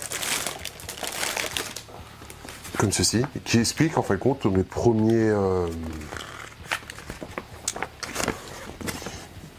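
Plastic packaging crinkles and rustles in a man's hands.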